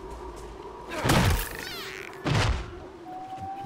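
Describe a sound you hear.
A sword swings and slices with sharp whooshes.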